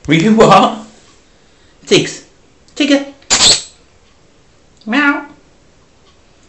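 A cat meows loudly nearby, several times.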